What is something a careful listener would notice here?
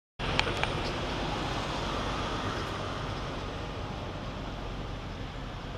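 Leaves rustle in a tree overhead.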